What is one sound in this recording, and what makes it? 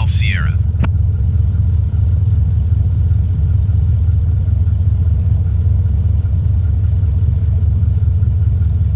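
A small propeller plane's engine idles with a steady low drone.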